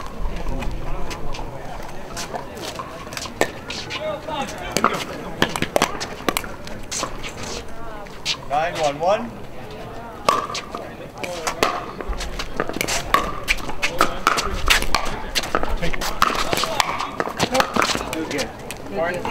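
Paddles strike a plastic ball with sharp pops.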